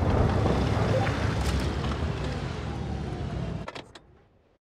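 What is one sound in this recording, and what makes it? A tank engine rumbles loudly.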